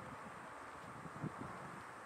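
Footsteps crunch on gravel and dry leaves.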